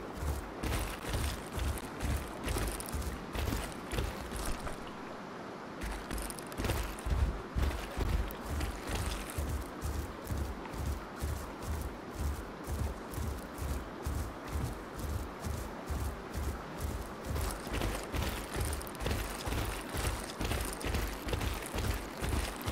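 A large animal's heavy footsteps thud in a quick, steady rhythm over rough ground.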